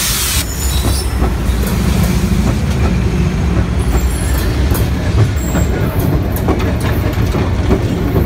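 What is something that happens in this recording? A diesel locomotive rumbles past up close.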